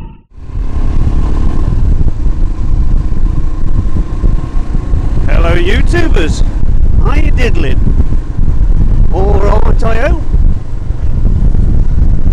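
A motorcycle engine runs steadily.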